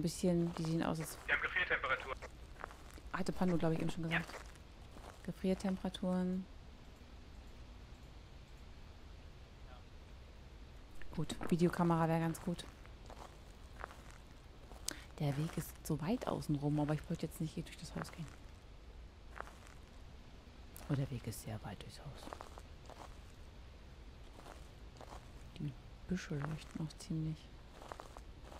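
A woman talks calmly into a headset microphone, in bursts with pauses.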